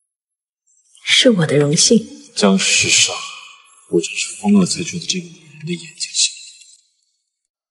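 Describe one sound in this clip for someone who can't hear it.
A young man speaks softly up close.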